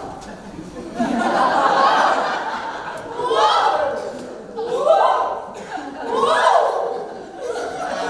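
A group of young women shout and cheer together.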